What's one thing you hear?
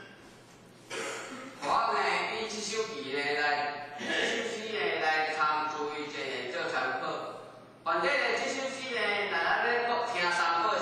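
A man lectures with animation, close by.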